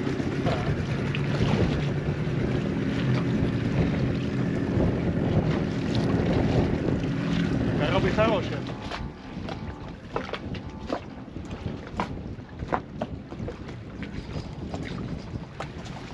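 Water splashes against a hull.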